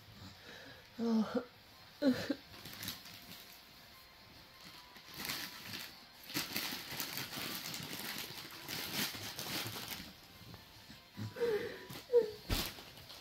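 A young woman sobs and wails close by.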